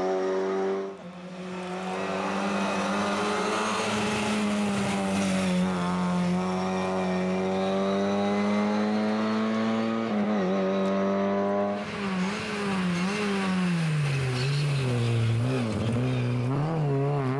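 A rally car engine roars and revs hard, rising and falling in pitch.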